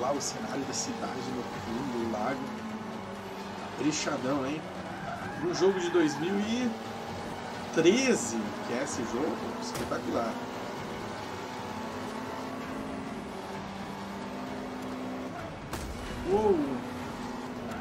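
A race car engine revs and hums steadily.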